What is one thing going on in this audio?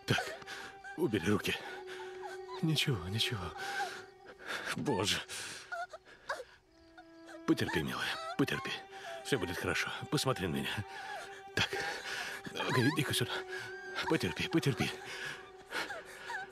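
A young girl cries out and sobs in pain, close by.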